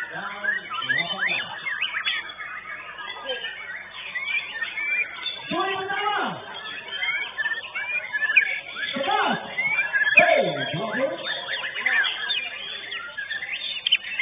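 A caged songbird sings loud, rapid chirps and trills.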